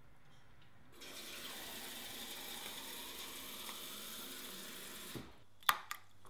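Water pours from a tap into a glass.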